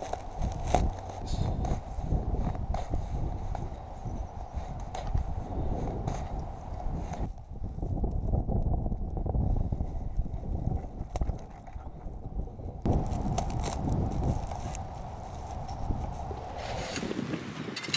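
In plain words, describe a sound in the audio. Straw rustles and crackles close by.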